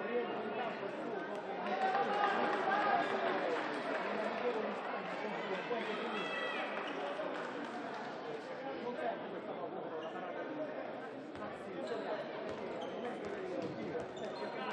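Players' shoes squeak on a wooden floor.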